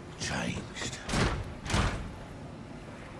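A door creaks and bangs open.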